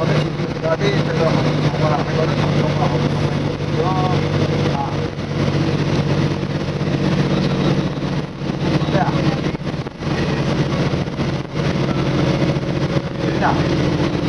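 Tyres roll over the road with a steady rumble.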